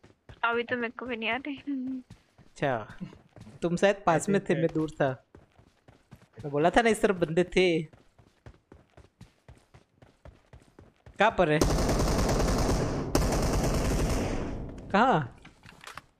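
Footsteps thud quickly and steadily on dirt and gravel.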